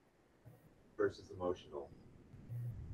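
A man speaks briefly in a room.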